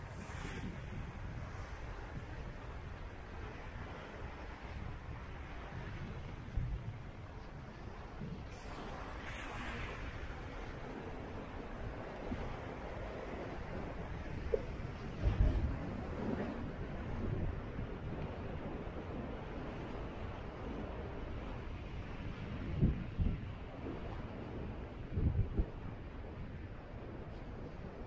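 Wind blows and buffets in gusts outdoors.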